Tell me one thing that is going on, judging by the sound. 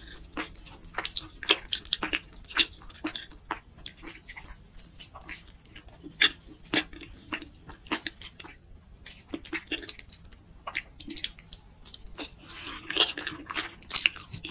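Noodles slurp and squelch close to a microphone.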